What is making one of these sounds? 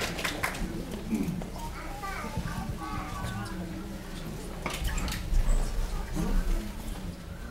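A woman talks quietly into a microphone.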